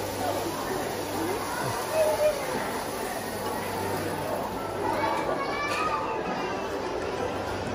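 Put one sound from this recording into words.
A crowd murmurs in a busy echoing hall.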